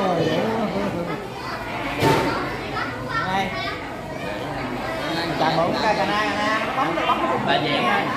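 Men and women talk nearby with animation.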